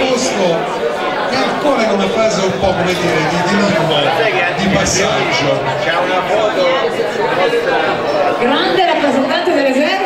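A man speaks loudly into a microphone, heard through a loudspeaker in a large room.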